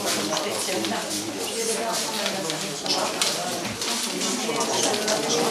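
Paper ballots rustle and crinkle as they are unfolded.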